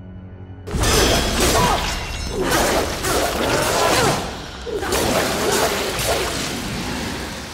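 Blades swish and strike in a fast fight.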